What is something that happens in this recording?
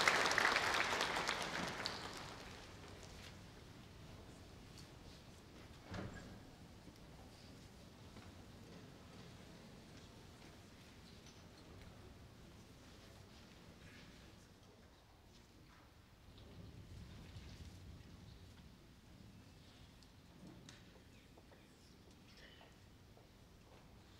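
A large audience murmurs quietly in a big hall.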